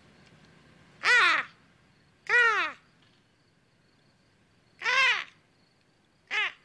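A man calls out in short, loud bursts.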